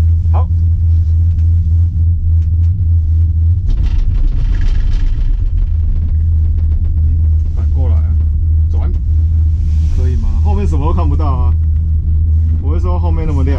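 A gondola cabin hums and rattles steadily as it rides along the cable.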